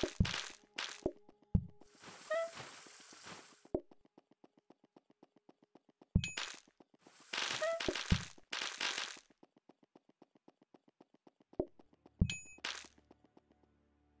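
Short game sound effects pop and chime.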